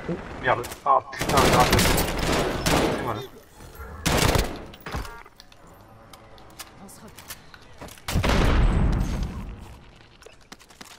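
Gunfire rattles in loud, rapid bursts.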